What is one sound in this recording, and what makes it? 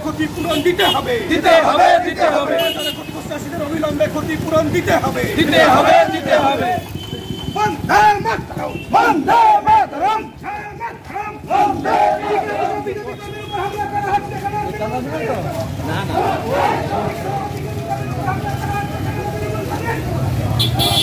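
A crowd of men chant slogans loudly outdoors.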